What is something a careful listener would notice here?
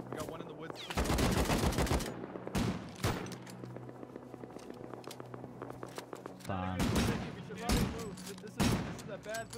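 Gunshots crack loudly in bursts and single shots.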